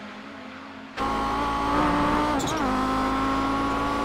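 A racing car engine roars loudly up close, rising and falling in pitch.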